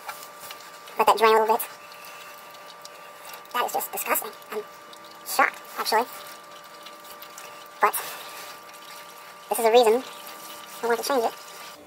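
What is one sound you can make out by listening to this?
Oil drips slowly into a plastic drain pan.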